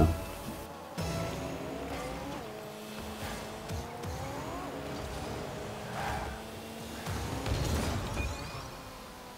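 A car boost roars in short bursts.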